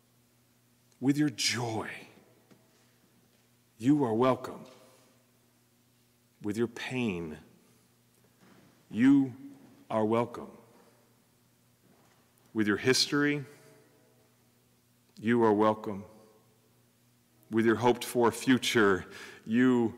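A man speaks calmly into a microphone in short phrases, with pauses between them, in a slightly echoing room.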